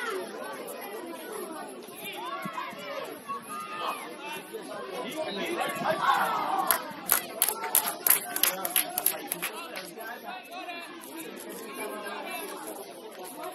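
Young players shout and call out across an outdoor pitch.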